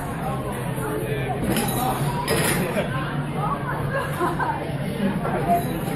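A crowd of men and women chatter indistinctly close by, in a busy room.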